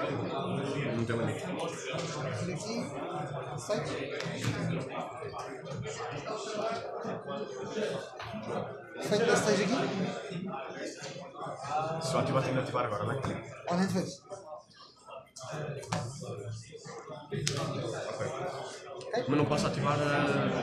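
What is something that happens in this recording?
Playing cards slide and tap on a soft mat.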